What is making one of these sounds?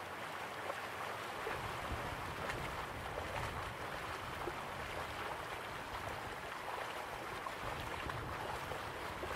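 Water splashes steadily down a small waterfall into a pool.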